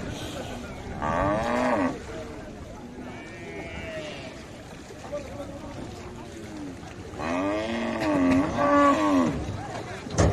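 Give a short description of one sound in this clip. Men call out loudly from close by, outdoors.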